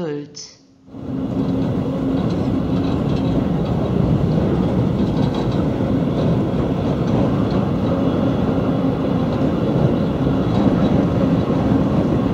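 Wind rushes past a moving train.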